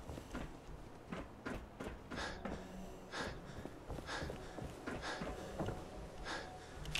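Footsteps fall at an even walking pace on hard ground.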